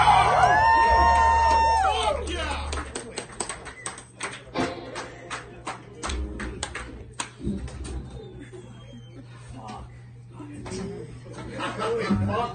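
A drummer plays a drum kit live.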